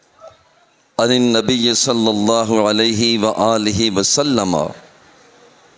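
A man speaks through a microphone with animation.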